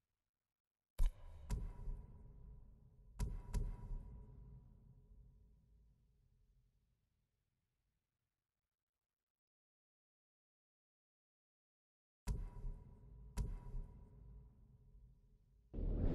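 Menu sounds chime with a sharp whoosh as options switch, ringing out briefly each time.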